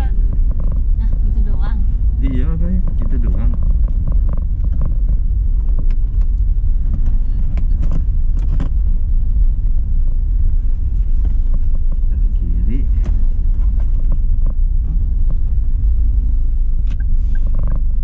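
A car engine rumbles steadily from inside the cabin as the car drives slowly.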